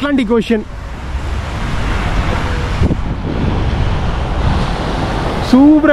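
Small waves wash steadily onto a sandy shore.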